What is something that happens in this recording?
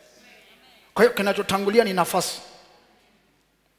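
A man speaks forcefully through a headset microphone, his voice echoing in a large hall.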